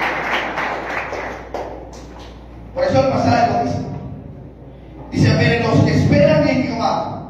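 A man preaches loudly through a microphone and loudspeakers in a large echoing hall.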